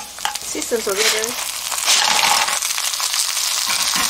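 Clams clatter as they tumble into a sizzling pan.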